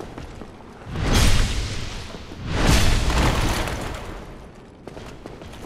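Heavy weapon blows land with loud crashing thuds.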